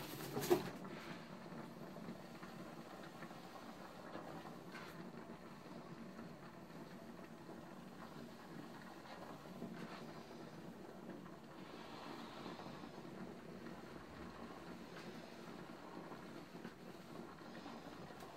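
A handheld steamer hisses softly as it puffs steam.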